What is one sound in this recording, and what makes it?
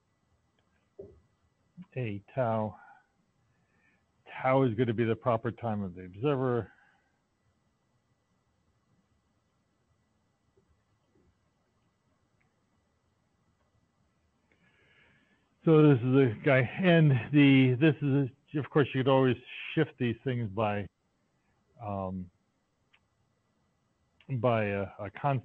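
A man speaks calmly over an online call, pausing now and then.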